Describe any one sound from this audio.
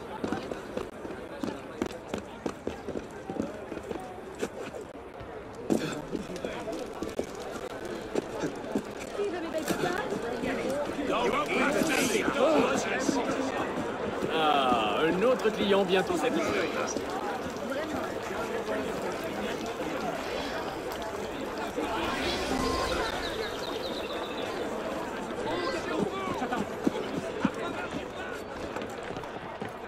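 Footsteps patter quickly on a roof and on stone.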